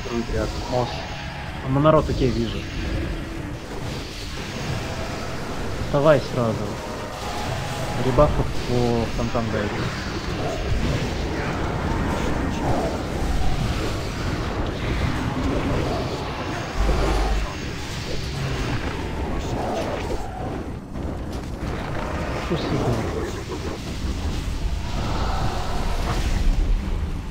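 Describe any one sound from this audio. Magic spells whoosh and crackle amid a battle.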